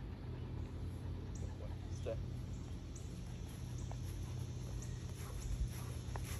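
Footsteps swish softly through grass.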